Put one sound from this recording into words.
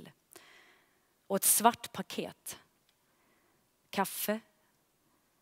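A young woman reads aloud calmly through a headset microphone.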